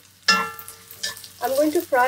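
A spatula stirs vegetables in a pan.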